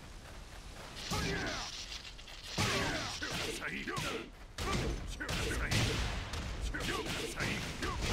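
Game fighters trade punches and kicks with heavy impact thuds.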